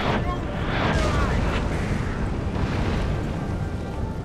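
Musket volleys crackle and boom across a battlefield.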